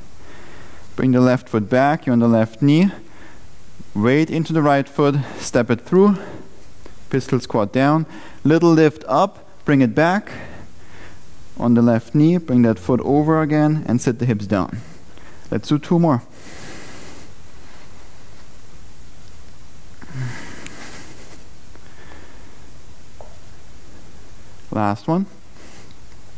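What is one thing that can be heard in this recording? A man speaks calmly and clearly through a close microphone.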